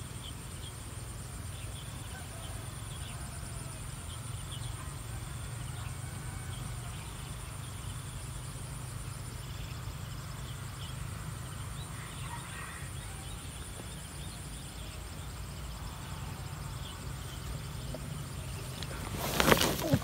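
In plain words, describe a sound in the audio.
Birds chirp in short calls overhead.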